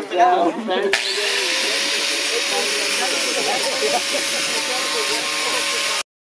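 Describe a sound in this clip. An angle grinder whirs steadily.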